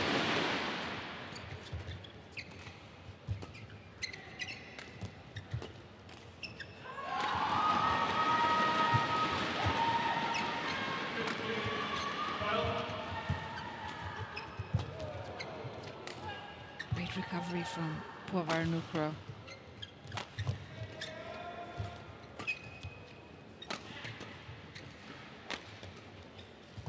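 Rackets smack a shuttlecock back and forth in quick sharp hits.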